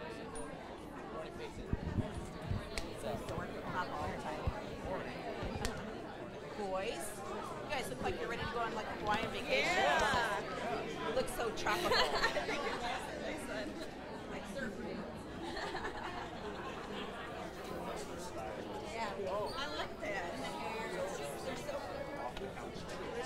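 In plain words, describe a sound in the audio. A crowd of men and women chat and greet one another in a large echoing hall.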